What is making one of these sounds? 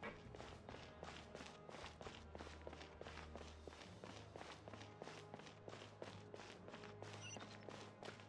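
Quick footsteps run across a hard stone floor.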